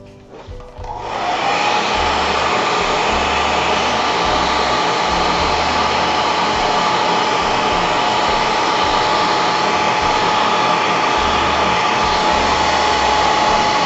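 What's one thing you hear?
A heat gun blows with a loud, steady whirring roar.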